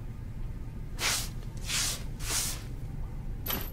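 A broom sweeps with quick swishing strokes.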